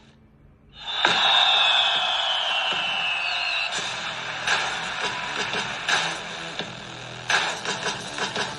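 A cheerful victory jingle plays from a tablet's small speaker.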